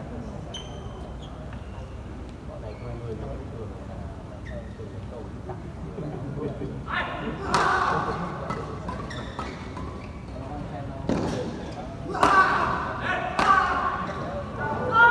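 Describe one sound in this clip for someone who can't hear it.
Players' shoes squeak sharply on the court floor.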